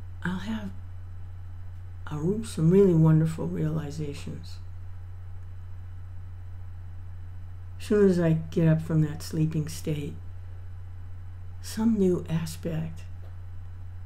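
An older woman speaks calmly into a nearby microphone, in short bursts with pauses.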